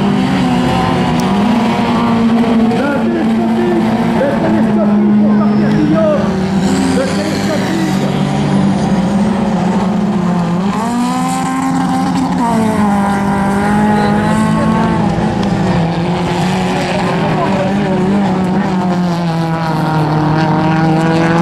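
Rally car engines roar and rev on a dirt track.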